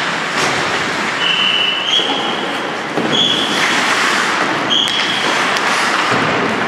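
A hockey stick clacks against a puck now and then.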